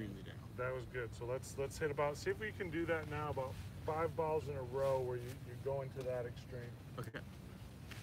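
A man talks calmly close by, outdoors.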